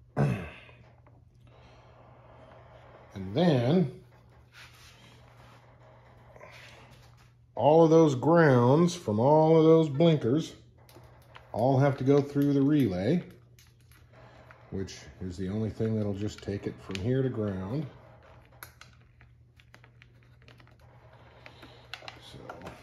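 Plastic wire connectors rustle and click softly as hands handle them.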